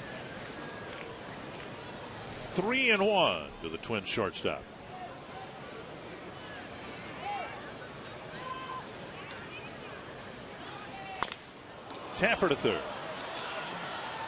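A stadium crowd murmurs in the open air.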